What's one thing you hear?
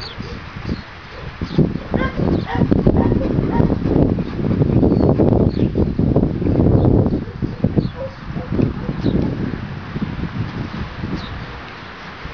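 A dog pants heavily.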